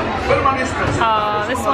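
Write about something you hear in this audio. A young girl squeals excitedly.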